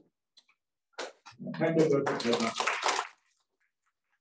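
People in an audience applaud briefly.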